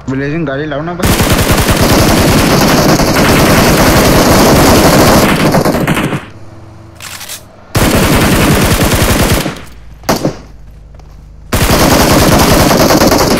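A rifle fires in long rapid bursts.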